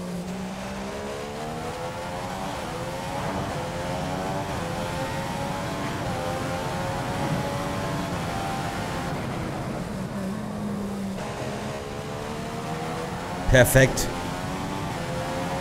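A racing car engine whines loudly, rising in pitch through the gears, then drops while braking and climbs again.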